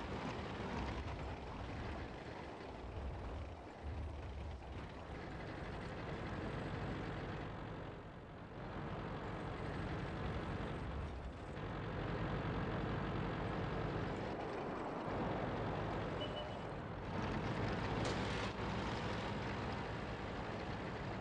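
A tank engine rumbles steadily as a tank drives over rough ground.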